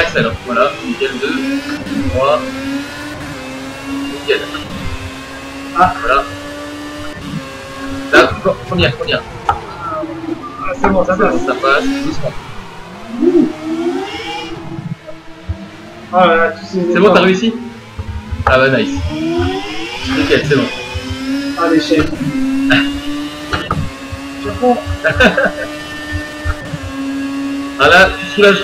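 A racing car engine whines, rising in pitch through the gears and dropping when braking.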